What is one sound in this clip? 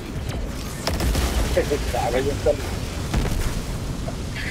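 Heavy explosions boom and rumble nearby.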